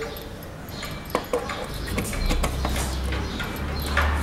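A plug clicks into a socket on a bicycle.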